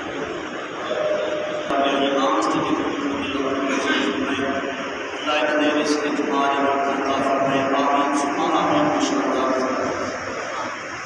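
Several men chant together loudly in a room.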